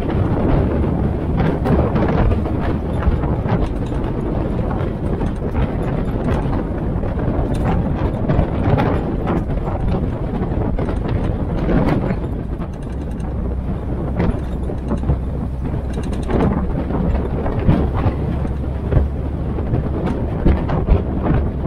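An open military jeep's four-cylinder petrol engine drones as it drives.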